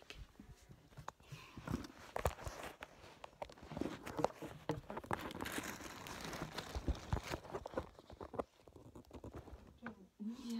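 Hands rustle and knock against a phone close up.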